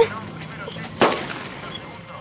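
A pistol clatters onto stone pavement.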